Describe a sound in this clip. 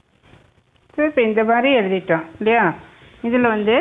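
A woman speaks clearly and with animation, close by.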